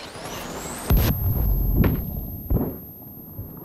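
A stun grenade goes off with a loud bang.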